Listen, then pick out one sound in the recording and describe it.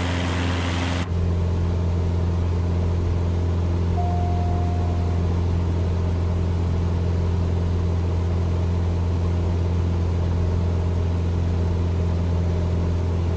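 A small plane's engine hums low and muffled from inside the cabin.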